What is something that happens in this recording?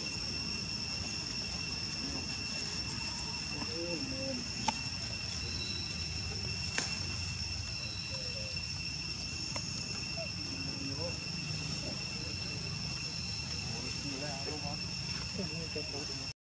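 Dry leaves rustle under walking monkeys.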